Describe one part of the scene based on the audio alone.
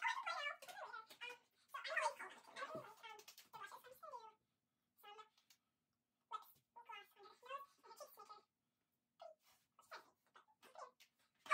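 A girl talks with animation close by.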